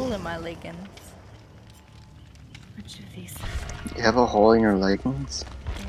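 A campfire crackles and burns.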